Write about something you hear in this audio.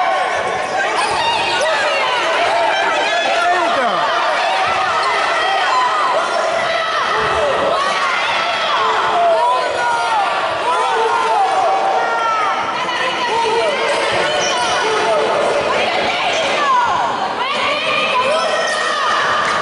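A crowd of young people chatters and shouts in a large echoing hall.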